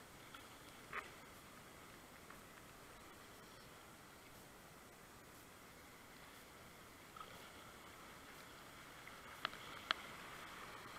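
A kayak paddle splashes and knocks against the water.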